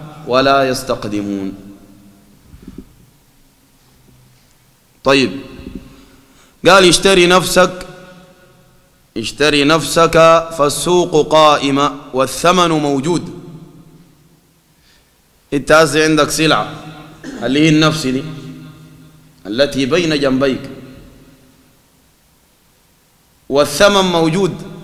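A man speaks into a microphone in bursts, calmly and with emphasis.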